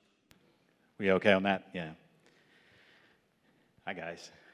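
A middle-aged man speaks calmly into a microphone over loudspeakers in a large echoing hall.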